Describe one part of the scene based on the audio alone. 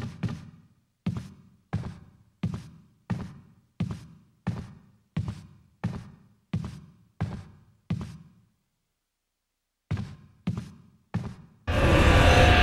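Heavy footsteps thud steadily on a hard floor, echoing in a large room.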